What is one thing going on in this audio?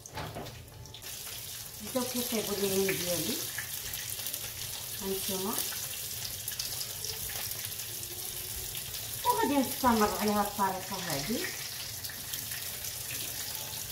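Food sizzles in hot oil in a frying pan.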